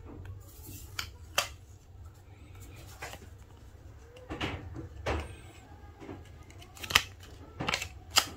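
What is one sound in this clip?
Stickers peel off with soft tearing rustles.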